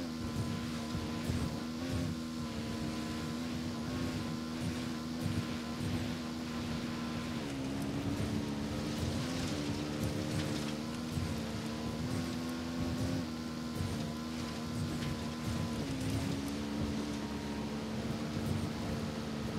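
A dirt bike engine drones steadily, its pitch dipping briefly now and then.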